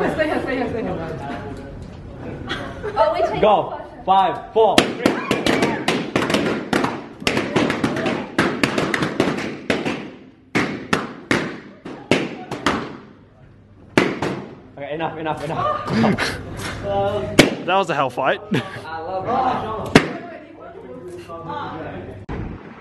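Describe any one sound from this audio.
Young men and women talk and laugh nearby.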